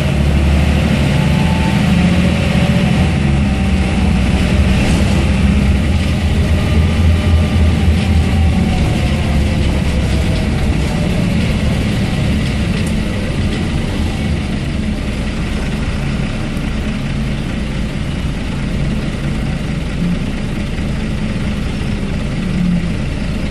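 A bus body rattles and creaks over the road.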